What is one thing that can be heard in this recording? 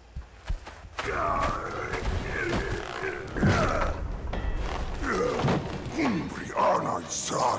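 A monster speaks in a deep, growling voice, up close.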